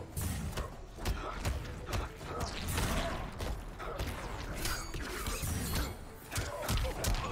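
Punches and kicks land with heavy thuds in quick succession.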